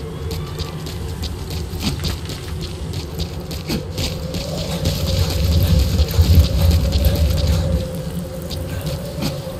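Footsteps run quickly over rocky ground and dry grass.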